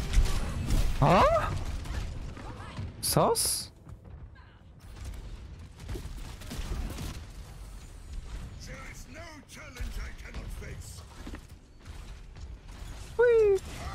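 Game sound effects whoosh and chime.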